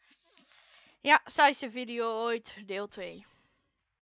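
A boy talks excitedly into a close microphone.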